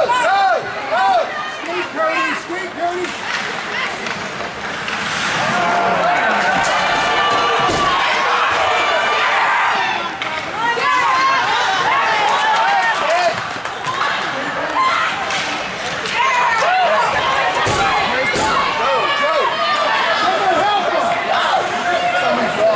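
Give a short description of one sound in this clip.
A crowd of spectators shouts and cheers in an echoing rink.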